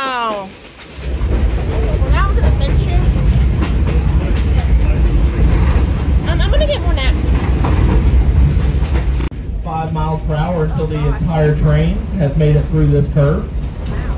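A train rumbles and clatters along the tracks close by.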